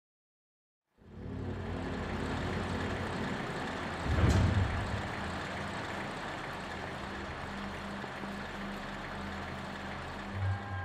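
A low, steady magical hum rings out with soft tones.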